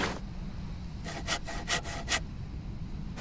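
A saw rasps against wood in short strokes.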